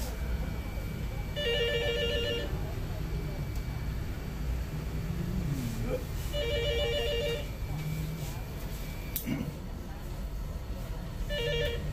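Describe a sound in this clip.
A cloth rubs softly over a man's face.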